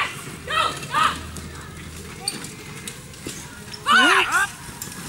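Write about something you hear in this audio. A man calls out loudly to a horse from some distance.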